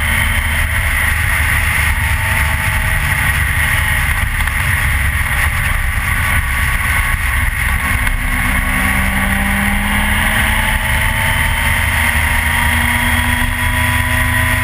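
Wind roars loudly and steadily against a rider's helmet.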